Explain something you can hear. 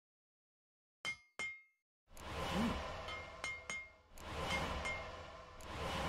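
Short game menu clicks and chimes sound again and again.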